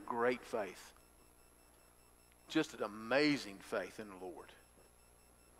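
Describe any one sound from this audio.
A middle-aged man speaks calmly into a microphone in a large room.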